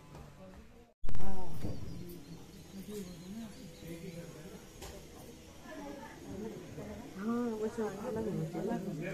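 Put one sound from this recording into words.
Several people murmur and talk nearby.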